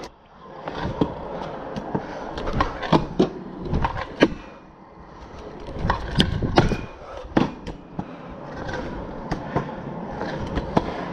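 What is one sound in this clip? Scooter wheels clack and knock over bumps and ledges.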